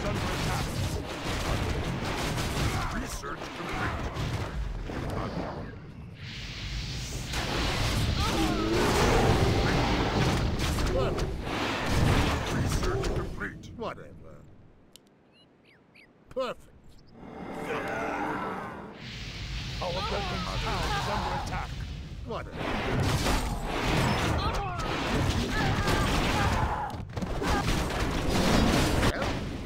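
Swords and weapons clash in a noisy battle.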